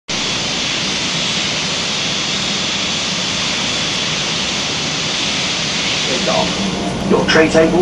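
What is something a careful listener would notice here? A jet engine whines and roars steadily.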